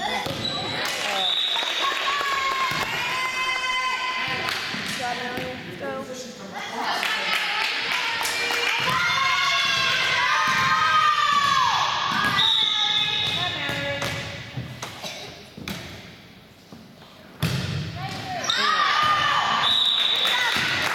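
Young girls shout and cheer on the court.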